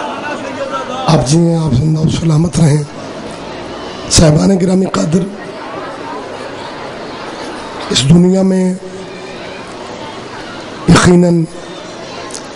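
A middle-aged man speaks forcefully in short bursts into a microphone over a loudspeaker.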